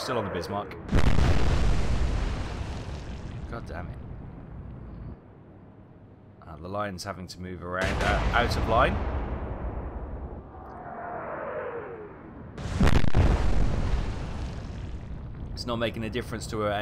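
Shells explode in the sea with deep, booming blasts.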